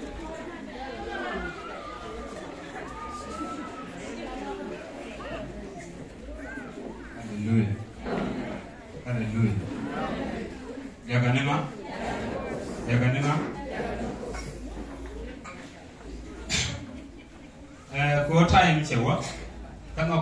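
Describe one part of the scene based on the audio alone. A young man speaks into a microphone over a loudspeaker, in a calm preaching tone, in an echoing hall.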